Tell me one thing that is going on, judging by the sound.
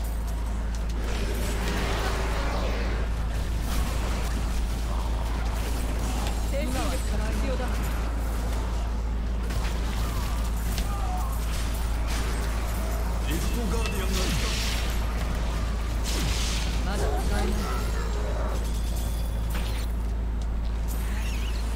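Game spell effects crackle and explode rapidly.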